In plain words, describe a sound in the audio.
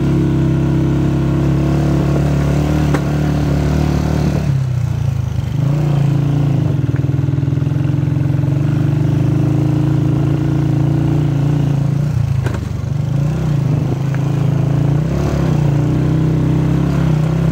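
A motorcycle engine hums steadily, rising and dipping.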